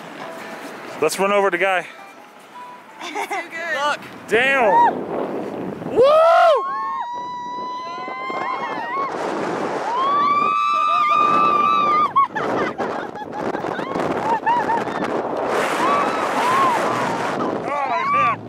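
A young woman laughs and shrieks close by.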